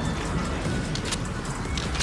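Heavy rain pours down outside.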